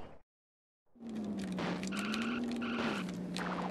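Buttons click on a game controller.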